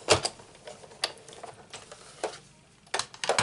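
A hand-cranked machine clicks and rattles as it turns.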